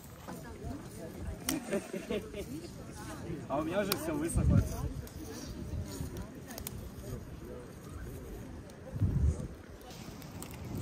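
Men talk among themselves nearby outdoors.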